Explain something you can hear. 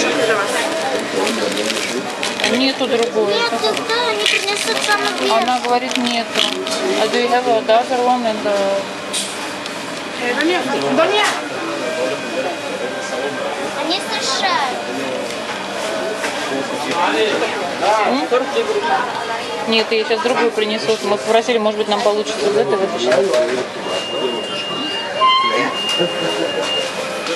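Several men and women talk nearby in a busy, echoing room.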